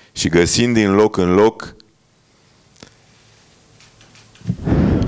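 An elderly man speaks into a microphone with animation, close up.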